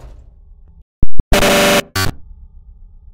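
Something shatters with a loud, sudden crash.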